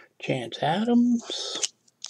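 Trading cards slide against each other as hands flip through them.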